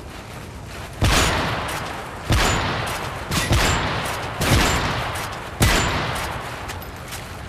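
A rifle fires loud, booming shots that echo and fade.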